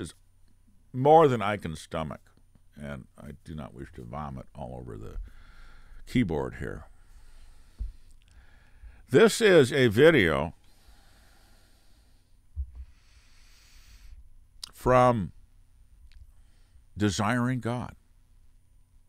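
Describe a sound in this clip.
An elderly man talks calmly and closely into a microphone.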